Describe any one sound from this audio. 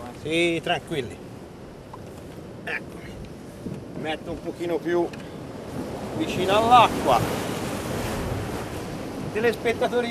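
Waves crash and wash against rocks.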